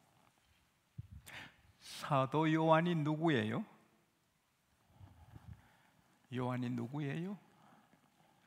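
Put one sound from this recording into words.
A middle-aged man speaks through a microphone in long, drawn-out phrases.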